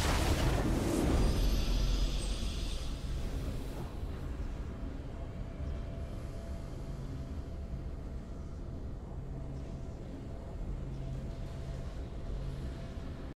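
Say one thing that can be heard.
A triumphant victory fanfare swells and then fades out.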